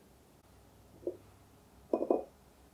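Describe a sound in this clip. An egg knocks against a ceramic bowl.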